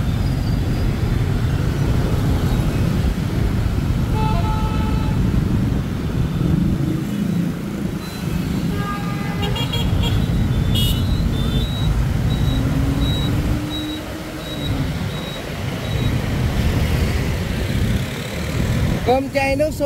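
Motorbike engines rumble steadily in busy traffic.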